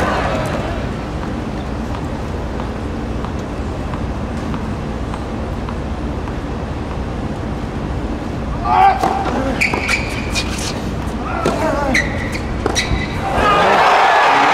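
A crowd murmurs quietly between points.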